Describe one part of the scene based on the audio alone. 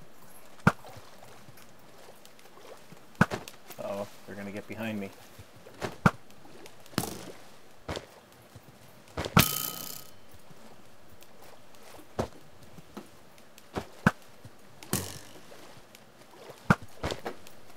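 A bow twangs sharply as arrows are fired, again and again.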